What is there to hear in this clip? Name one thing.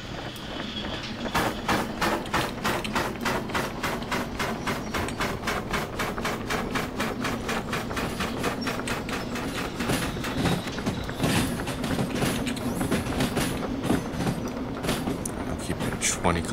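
Train wheels rumble and clack on the rails.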